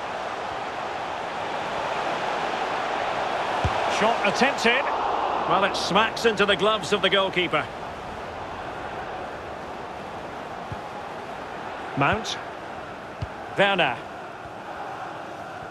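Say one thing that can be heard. A large crowd roars steadily in a stadium, swelling for a few seconds.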